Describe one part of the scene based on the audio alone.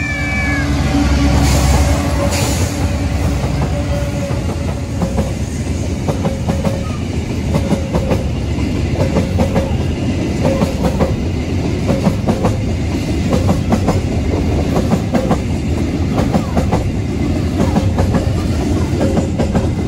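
Train wheels clatter rhythmically over the rail joints.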